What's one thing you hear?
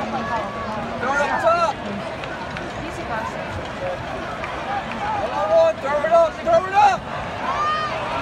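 A large stadium crowd murmurs and cheers.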